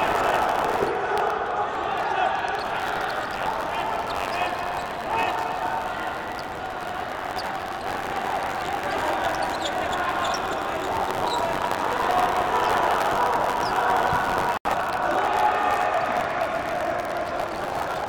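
A ball thuds as players kick it.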